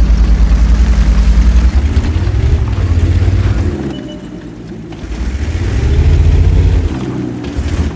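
A tank engine rumbles deeply and revs up and down.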